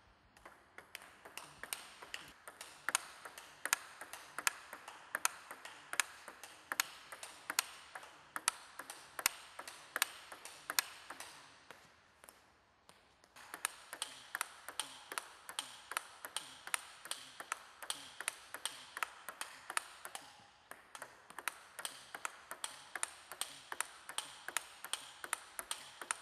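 A ping-pong ball clicks rapidly back and forth off paddles and a table in an echoing hall.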